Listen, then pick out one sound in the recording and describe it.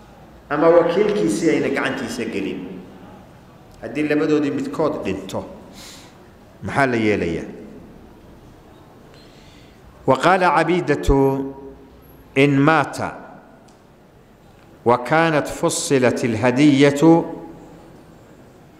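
An elderly man speaks slowly in short bursts into a microphone, with pauses between phrases.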